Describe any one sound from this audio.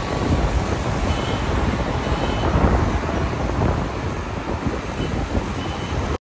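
Wind buffets loudly against a moving car.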